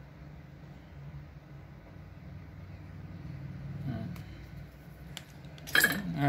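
Metal pliers click as they are opened and closed by hand.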